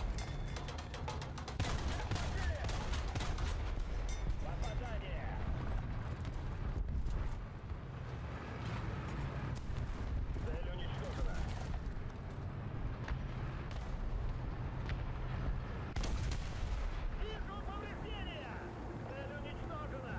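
A tank gun fires with sharp bangs.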